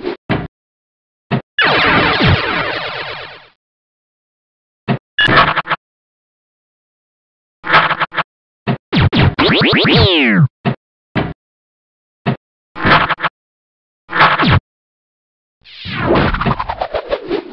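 Electronic pinball game sound effects chime, beep and sweep in short bursts.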